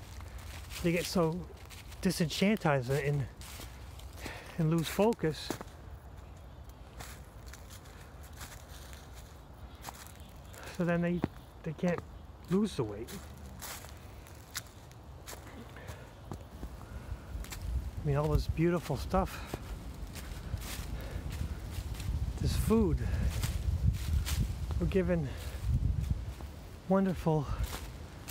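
Dry leaves crunch and rustle underfoot with each step.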